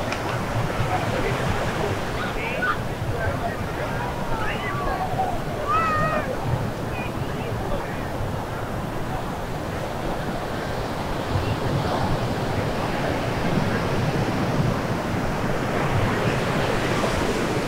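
Waves wash onto the shore in a steady rush.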